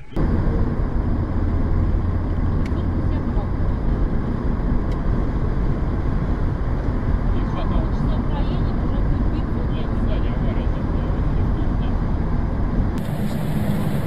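A car's tyres roar steadily on a highway.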